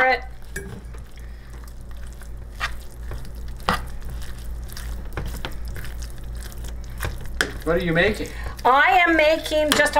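A spoon scrapes and stirs food in a metal pan.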